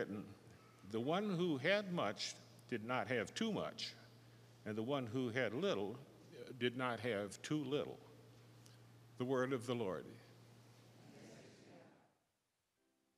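An elderly man speaks calmly into a microphone, heard through loudspeakers in a large echoing hall.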